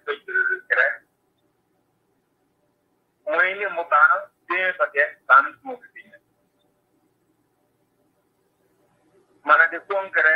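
A middle-aged man speaks calmly over an online call, with pauses.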